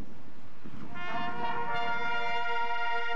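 A marching band's brass section plays a held chord.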